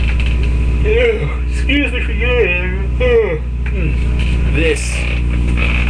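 A rubber balloon squeaks loudly as fingers rub it.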